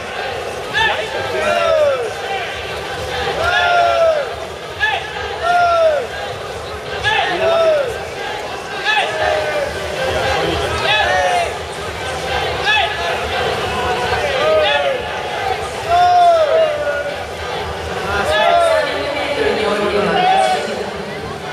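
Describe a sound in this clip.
Spectators shout encouragement over and over in a large echoing hall.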